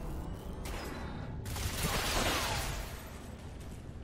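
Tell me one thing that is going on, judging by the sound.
A rifle fires a short burst of shots.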